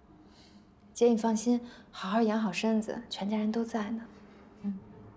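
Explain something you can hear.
A young woman speaks softly and reassuringly.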